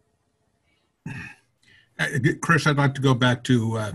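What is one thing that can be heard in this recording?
An older man talks over an online call.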